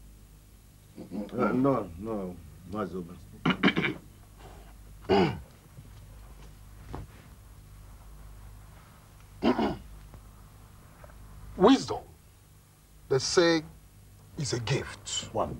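A man speaks forcefully, close by.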